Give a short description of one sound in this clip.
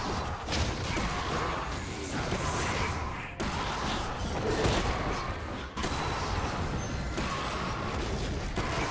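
Fantasy game spells whoosh and crackle during a fight.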